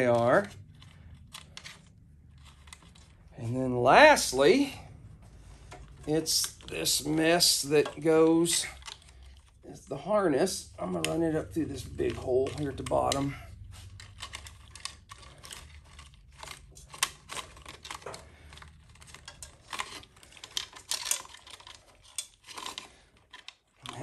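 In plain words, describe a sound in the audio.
Wires rustle and click as they are handled.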